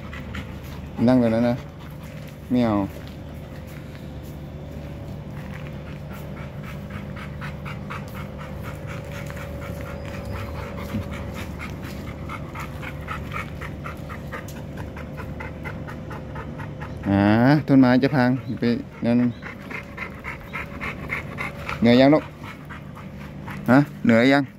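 A dog barks and yelps loudly in short bursts.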